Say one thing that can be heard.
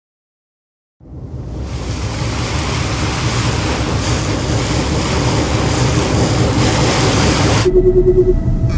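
Ocean waves wash and rush steadily.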